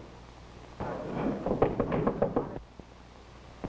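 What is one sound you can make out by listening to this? A fist knocks on a wooden door.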